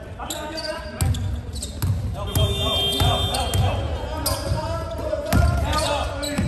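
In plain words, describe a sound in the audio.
A basketball bounces on a hard court, echoing in a large hall.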